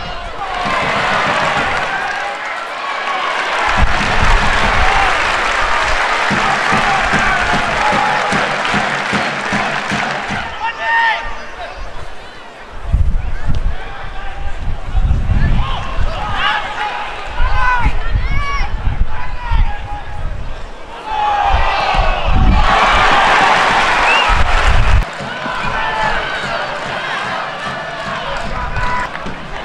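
A large crowd cheers and chants in an open-air stadium.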